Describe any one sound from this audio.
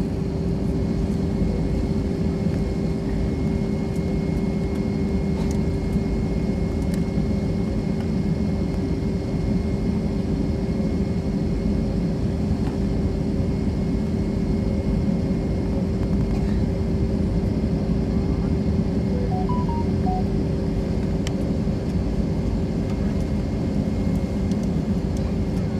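Jet engines roar and hum steadily, heard from inside an airliner cabin.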